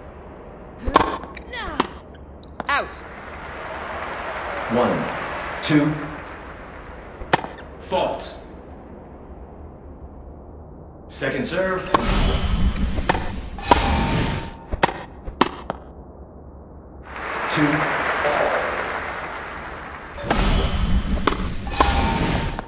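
A tennis racket strikes a ball with a sharp pop, again and again.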